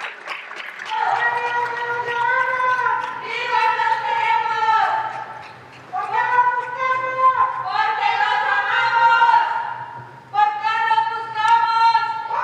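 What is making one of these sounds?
Several women sing together loudly in a large echoing hall.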